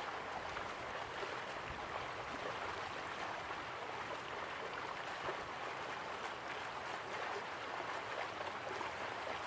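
Water rushes steadily from a waterfall.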